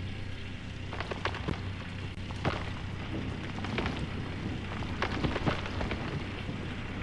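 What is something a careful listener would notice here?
Dirt and rocks thud as an excavator bucket digs and dumps.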